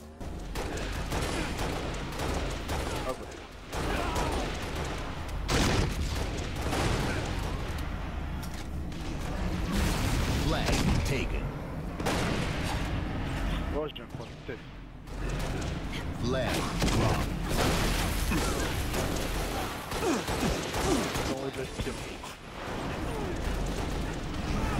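Gunfire rattles in a video game.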